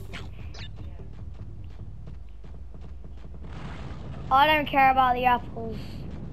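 Video game sound effects and music play from a television speaker.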